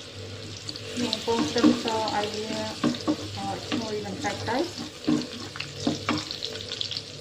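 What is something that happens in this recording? A spatula scrapes and taps against a metal pan.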